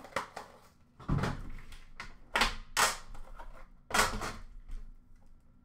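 A metal tin clanks and scrapes as hands handle it.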